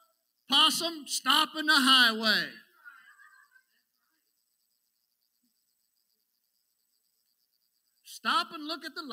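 A middle-aged man speaks with emphasis into a microphone, pausing between phrases.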